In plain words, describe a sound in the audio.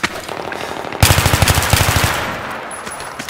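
A rifle fires a rapid burst of shots nearby.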